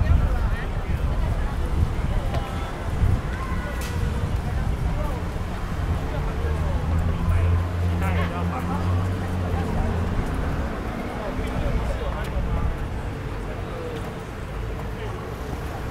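Voices of young people chatter nearby in an open space.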